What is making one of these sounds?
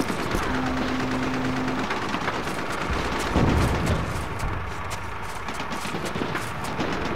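Footsteps crunch over rubble and broken glass.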